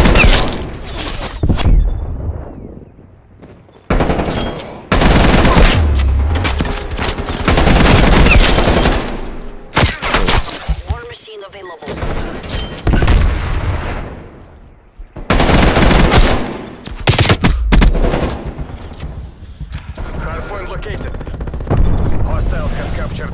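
Gunfire bursts out in loud, rapid volleys.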